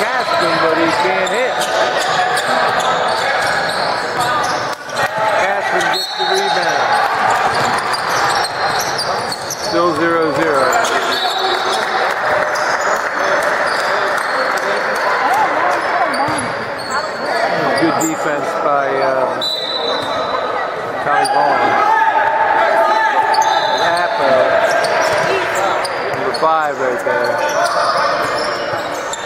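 Players and spectators chatter and call out in a large echoing gym.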